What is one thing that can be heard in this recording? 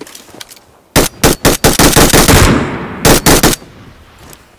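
Rapid gunfire bursts from a game play through a small tablet speaker.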